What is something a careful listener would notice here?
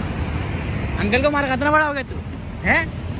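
A young boy speaks cheerfully close by.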